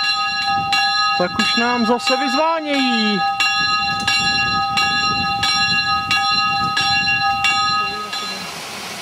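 Church bells ring out in a steady rhythm.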